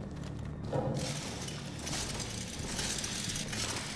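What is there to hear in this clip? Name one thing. A rope rustles as a hand pulls it.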